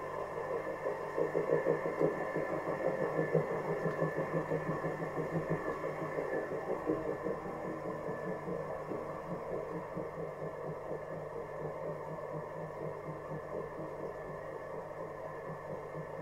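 Wet clay squelches and hisses under fingers on a spinning wheel.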